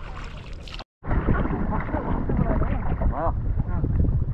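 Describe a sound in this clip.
Water splashes against a boat as a paddle dips in.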